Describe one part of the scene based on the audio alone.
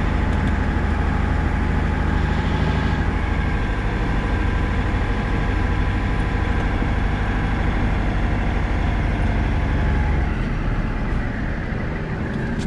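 A heavy vehicle's diesel engine rumbles loudly from inside the cab.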